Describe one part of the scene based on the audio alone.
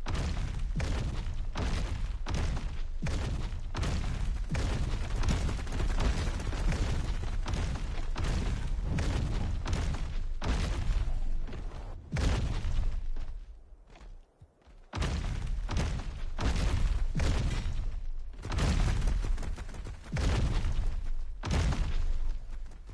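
A large creature's heavy footsteps thud in a steady, fast rhythm.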